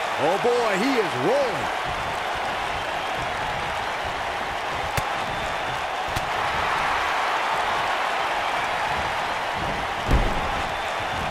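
A large crowd cheers and murmurs steadily in an echoing arena.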